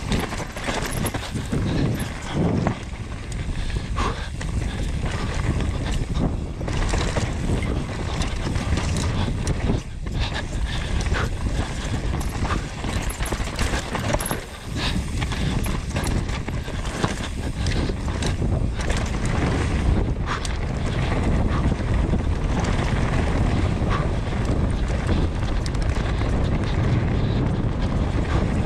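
Bicycle tyres roll fast and crunch over a dirt trail.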